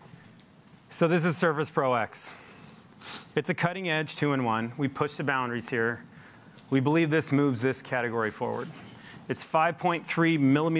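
A man speaks calmly through a microphone to an audience.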